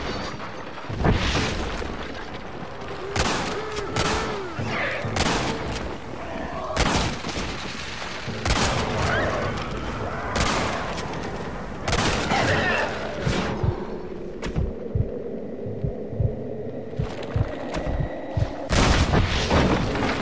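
Gunshots crack out loudly, one at a time, with short echoes.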